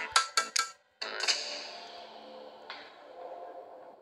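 A game menu button clicks with a short chime.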